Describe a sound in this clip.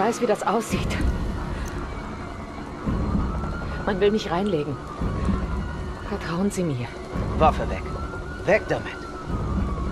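A young woman speaks tensely and pleadingly, close by.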